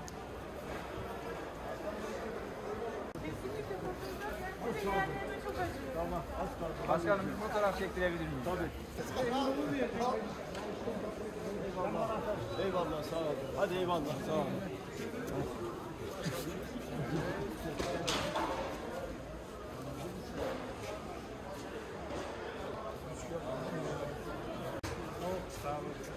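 A crowd murmurs and chatters all around.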